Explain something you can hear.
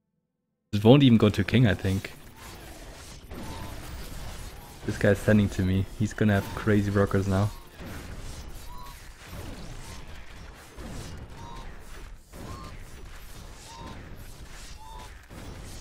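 Video game combat effects clash and thud.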